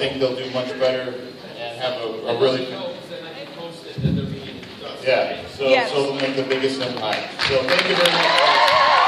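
A man talks over a microphone through loudspeakers in a large echoing hall.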